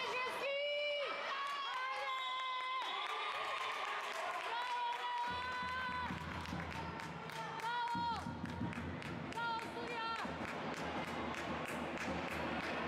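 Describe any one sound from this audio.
A basketball thumps as it bounces on the floor.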